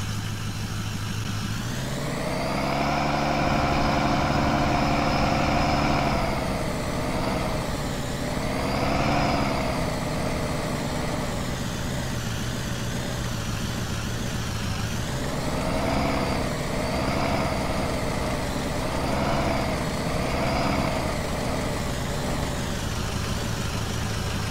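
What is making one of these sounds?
A truck engine hums and revs up and down.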